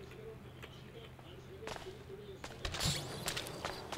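A wooden door swings open.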